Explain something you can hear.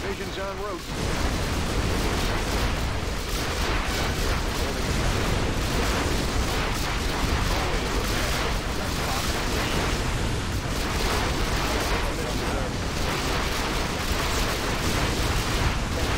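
Explosions boom and rumble over and over.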